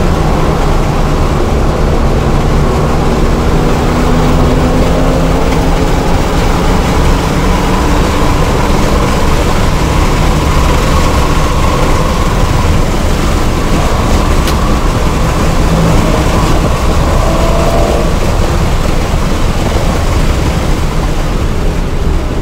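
Wind roars past a car at speed.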